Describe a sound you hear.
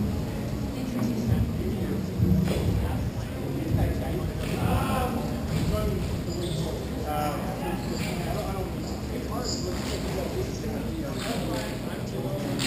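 Roller skate wheels scrape and roll on a hard floor.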